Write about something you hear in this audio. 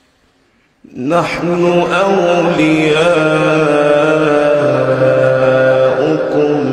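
A man chants in a drawn-out, melodic voice through a loudspeaker.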